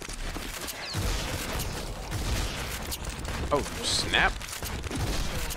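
Shotguns fire with loud booming blasts.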